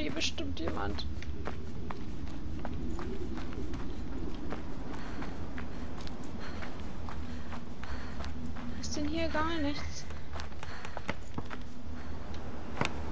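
Footsteps thud on wooden boards.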